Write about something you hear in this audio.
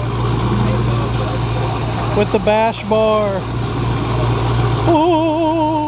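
A car engine idles with a deep, steady rumble close by.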